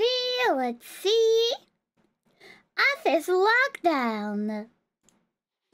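A young woman speaks with animation, close to a microphone, in a high, sing-song voice.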